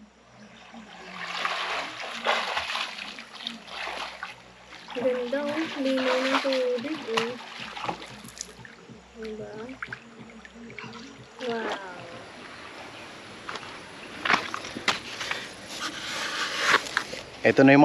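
A swimmer splashes and kicks through the water close by.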